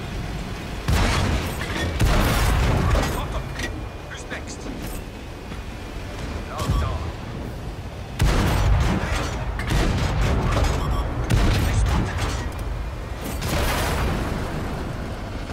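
A large explosion roars and crackles.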